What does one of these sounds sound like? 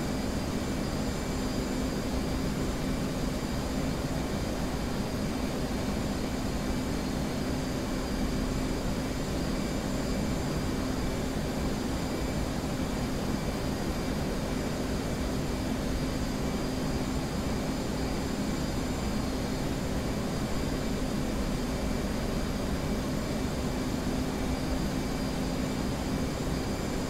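A jet engine hums and roars steadily.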